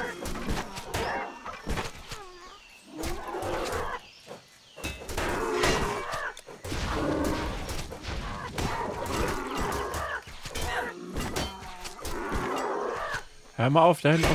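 Weapons clash and strike repeatedly in a fight.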